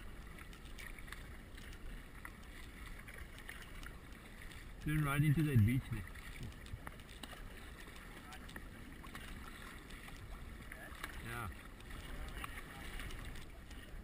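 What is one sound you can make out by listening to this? Kayak paddles dip and splash in the water.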